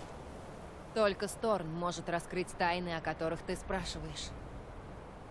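A woman speaks calmly, heard up close.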